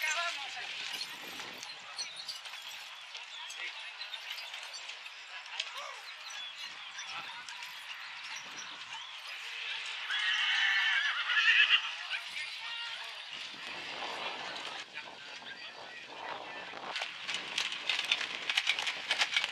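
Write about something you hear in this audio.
Hooves clop on dirt as a horse pulls a carriage.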